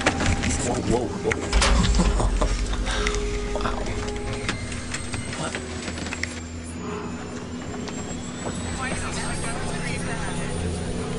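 An aircraft engine roars with a steady low drone.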